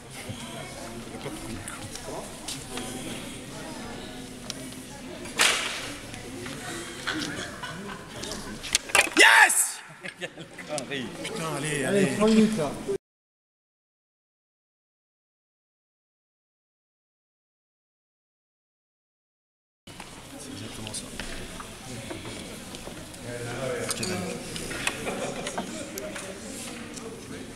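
Men talk nearby in an echoing hall.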